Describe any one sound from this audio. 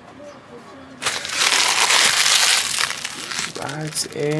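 A foil wrapper crinkles and tears loudly close by.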